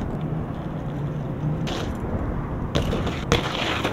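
Bike tyres roll over concrete.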